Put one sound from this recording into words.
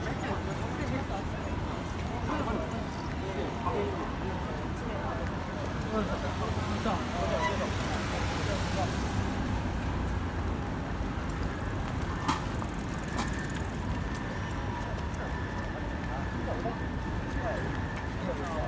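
A crowd of people chatter nearby.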